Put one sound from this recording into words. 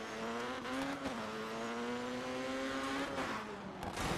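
A rally car engine roars at high revs.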